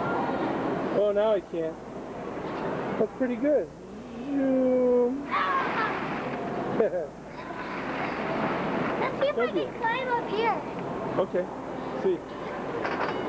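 A young boy laughs and squeals close by.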